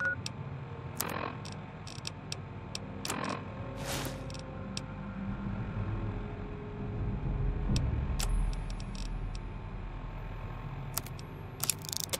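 Short electronic clicks sound one after another.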